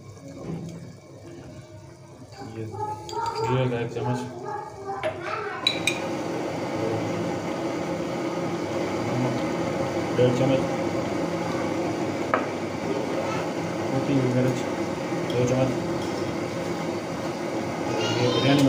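A pot of stew bubbles and simmers.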